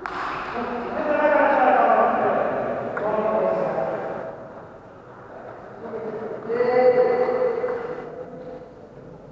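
Men talk nearby in a large echoing hall.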